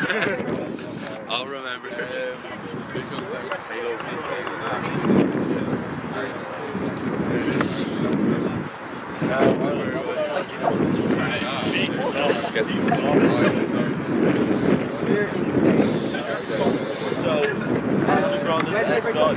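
A group of young men murmurs and chatters nearby.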